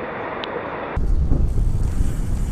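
A motorcycle engine rumbles low and steady.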